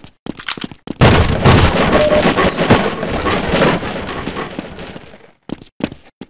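Wooden crates smash apart with a loud crash.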